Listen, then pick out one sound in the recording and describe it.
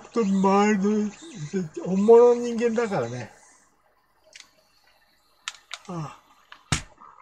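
An older man speaks with animation into a microphone close by.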